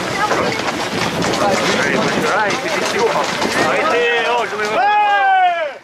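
A crowd of young men shouts and chatters outdoors.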